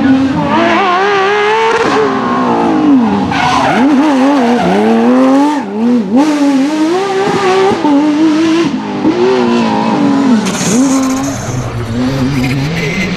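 A rally car engine roars and revs hard, rising and falling as it races past.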